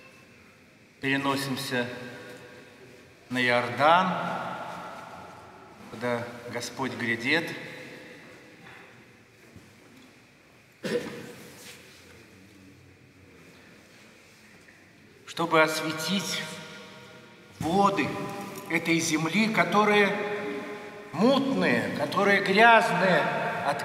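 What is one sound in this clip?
An elderly man speaks slowly and solemnly through a microphone, his voice echoing in a large, reverberant hall.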